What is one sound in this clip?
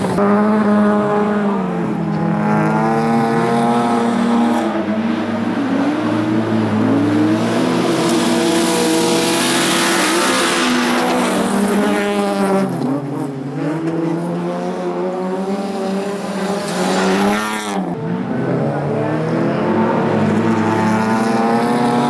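Rally car engines roar and rev loudly as the cars race past.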